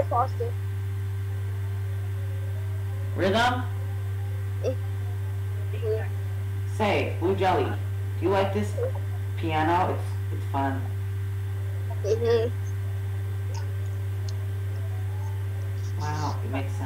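A teenage boy speaks casually and close up, heard through a headset microphone, in short bursts.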